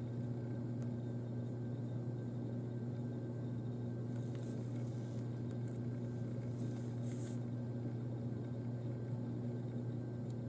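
A small brush scratches softly on paper.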